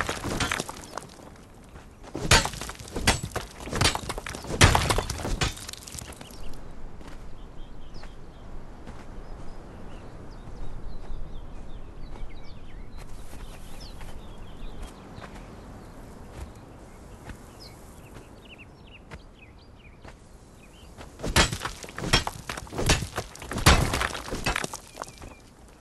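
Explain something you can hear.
A pickaxe strikes rock with sharp, repeated cracks.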